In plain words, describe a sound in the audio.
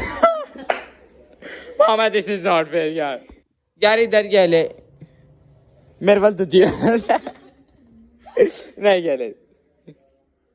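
Young women laugh together close by.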